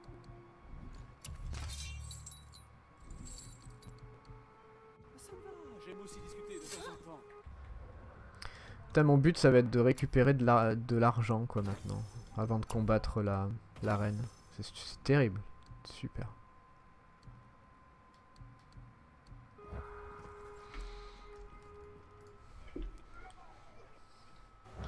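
Short menu clicks and chimes sound as options are chosen.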